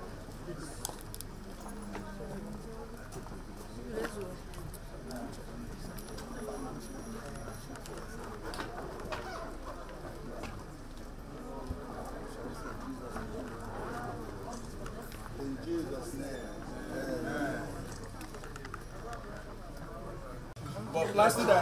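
A crowd of men and women chatter outdoors.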